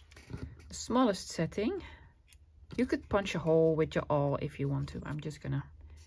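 A metal hand punch clicks shut on card.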